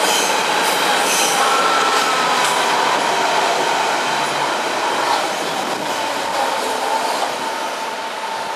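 Train wheels squeal on the rails.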